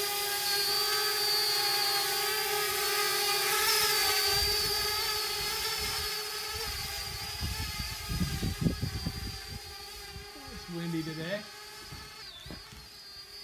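A drone's propellers whine steadily overhead, slowly fading as it flies away.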